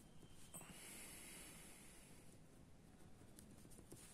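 A pen scratches softly across paper.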